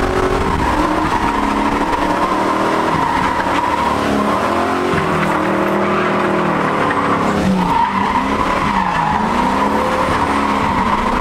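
A car engine roars loudly, revving up and down.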